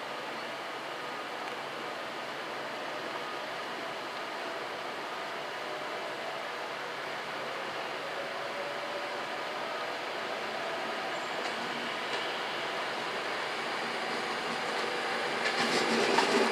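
A high-speed train approaches with a rising whine and rumble.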